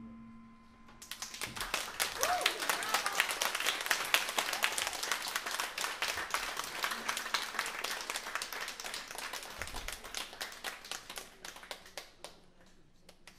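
A drummer plays quick, busy strokes on drums and cymbals.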